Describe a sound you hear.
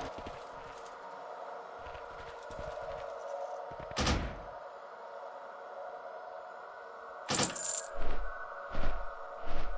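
Soft game music plays steadily.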